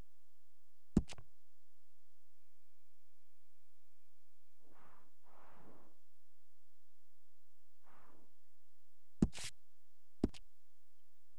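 A menu click sounds a few times.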